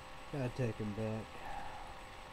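A man speaks briefly and close by.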